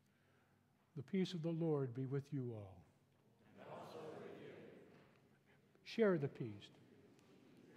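An elderly man chants loudly through a microphone in a large echoing hall.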